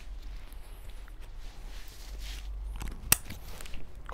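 A backpack's buckle clicks shut.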